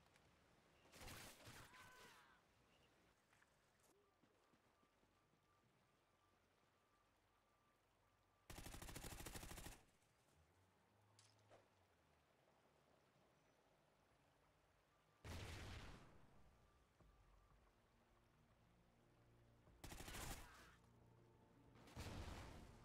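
Bursts of rapid gunfire rattle out loudly.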